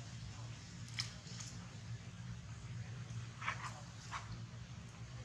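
Young monkeys squeak briefly nearby.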